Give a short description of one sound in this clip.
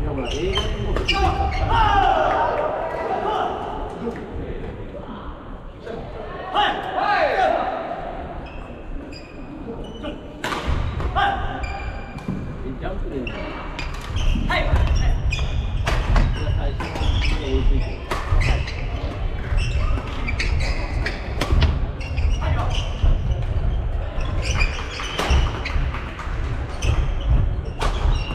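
Badminton rackets smack shuttlecocks in a large echoing hall.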